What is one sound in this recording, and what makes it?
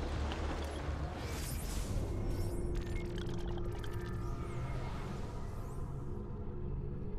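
Soft electronic whooshes and clicks sound as a menu opens.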